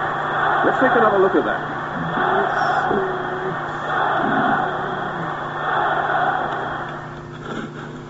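A stadium crowd roars and cheers in rising and falling waves.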